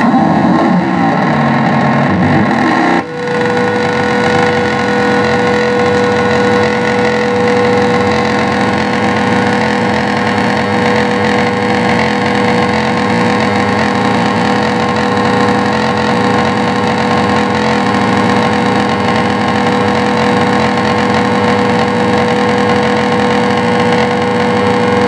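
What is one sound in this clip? Droning, buzzing electronic noise music plays loudly through amplifiers.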